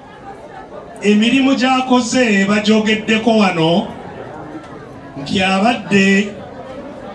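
A man sings loudly into a microphone through a loudspeaker, holding long notes.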